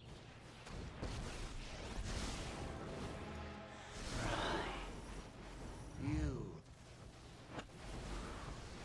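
A man speaks close to a microphone.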